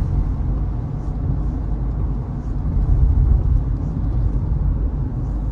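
A car engine and road noise hum low and steady from inside the cabin.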